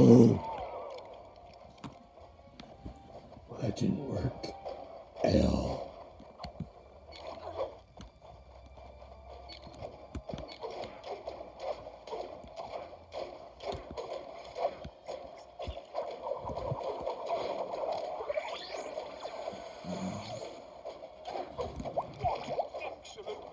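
Video game music and sound effects play from a small speaker throughout.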